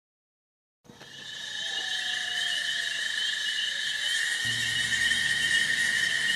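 Insects chirp steadily outdoors at night.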